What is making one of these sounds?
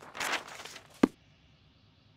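A heavy book thumps shut.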